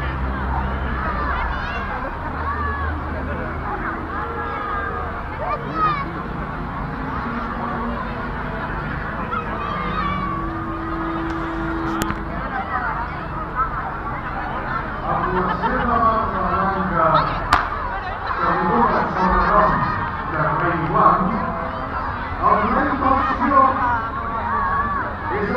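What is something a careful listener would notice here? A large crowd chatters and calls out outdoors.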